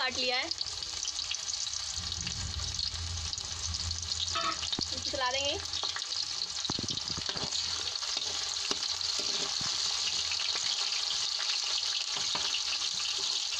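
Onions sizzle and crackle steadily in hot oil.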